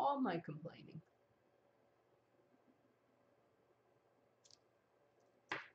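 An older woman speaks calmly into a nearby microphone.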